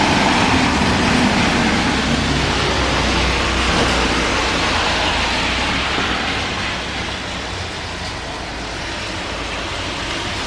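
Car tyres hiss past on a wet road.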